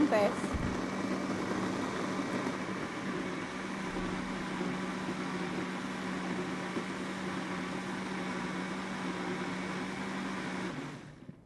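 A blender whirs steadily as it blends a thick liquid.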